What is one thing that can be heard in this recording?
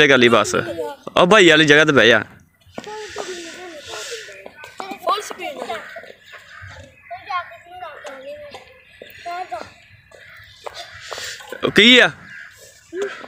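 A young child shouts excitedly close by.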